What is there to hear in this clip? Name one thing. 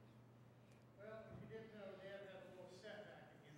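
A man speaks calmly to a gathering in a large echoing room.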